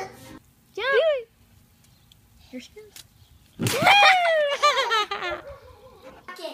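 A toddler girl squeals and laughs excitedly.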